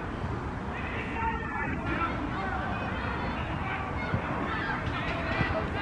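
Men shout to each other on a field.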